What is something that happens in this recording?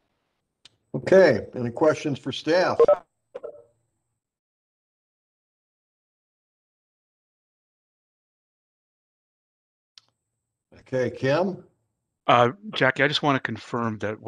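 A second man speaks calmly over an online call, his voice clearer.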